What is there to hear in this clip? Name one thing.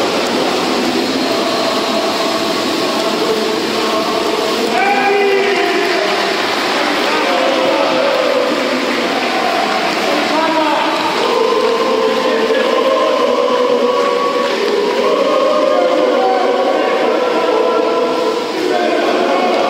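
Swimmers splash and churn the water in an echoing pool hall.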